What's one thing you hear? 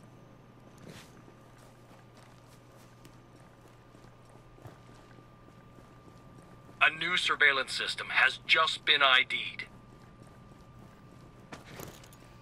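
Soft footsteps shuffle on a hard floor.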